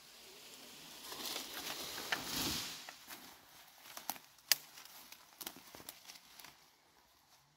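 Dry leaves and brush rustle underfoot as a person walks downhill.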